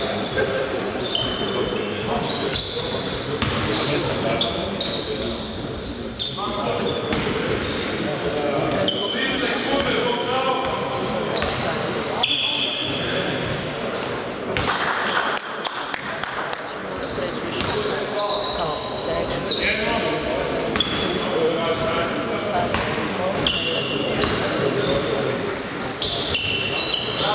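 Spectators murmur and chatter in an echoing hall.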